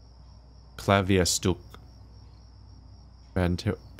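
A piano plays a few notes.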